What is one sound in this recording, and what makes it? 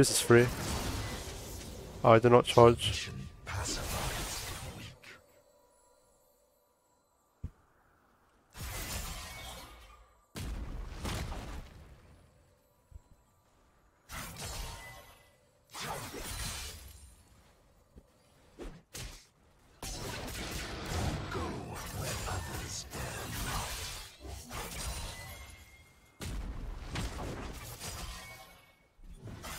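Spells and attacks from a video game clash in loud bursts.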